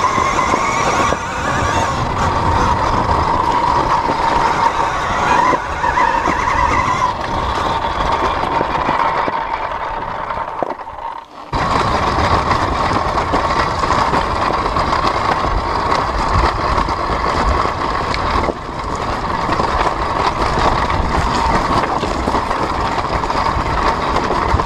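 Motorbike tyres crunch and rattle over loose stones and dirt.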